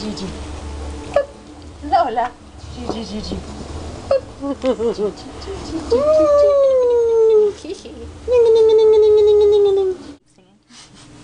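A woman talks in a high, sing-song voice close by.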